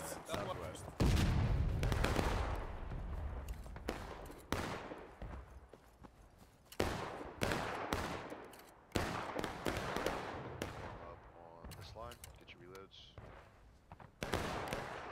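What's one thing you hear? Rifle shots crack nearby and echo away.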